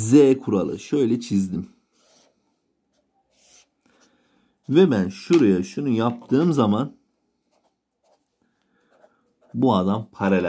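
A pen scratches across paper, drawing lines.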